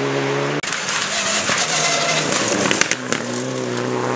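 Gravel sprays and rattles under a car's tyres.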